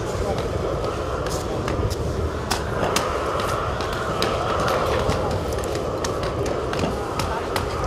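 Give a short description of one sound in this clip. A trowel scrapes plaster on a wall.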